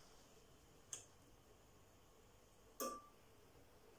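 A stove knob clicks as it is turned.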